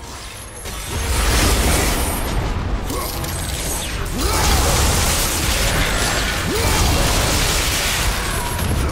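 Blades clash and slash with sharp metallic hits.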